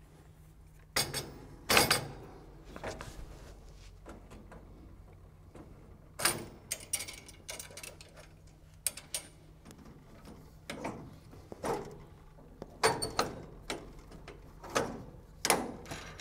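Metal parts clank and knock as a man works a mechanism.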